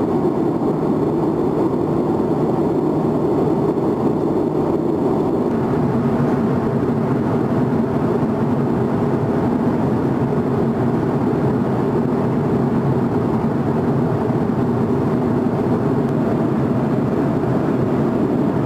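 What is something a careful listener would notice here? A steady low roar of jet engines drones throughout, heard from inside an aircraft cabin.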